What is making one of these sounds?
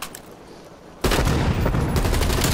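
A blast booms nearby.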